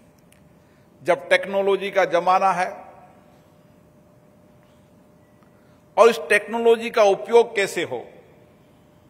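A middle-aged man speaks into a microphone through loudspeakers in an echoing hall, with pauses between phrases.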